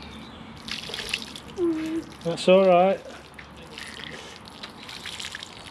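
Water trickles from a watering can onto soil.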